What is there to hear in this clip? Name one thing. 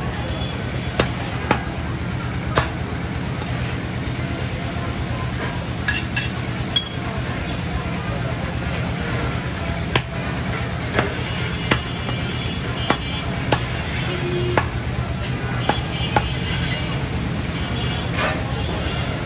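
A cleaver chops through meat onto a wooden block.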